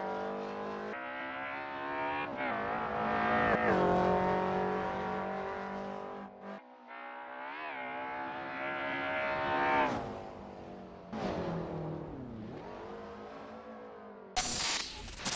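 A car engine revs hard, rising and falling in pitch as gears change.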